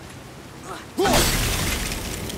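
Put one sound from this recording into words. A thrown axe strikes with a sudden loud crash.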